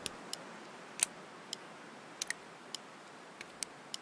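A revolver clicks sharply as it is loaded, one round at a time.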